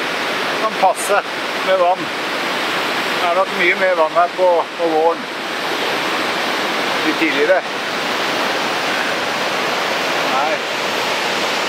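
A middle-aged man talks close by, calmly.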